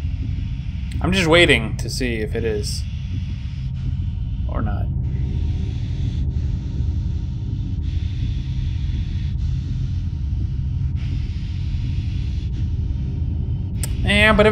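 A man speaks briefly into a close microphone.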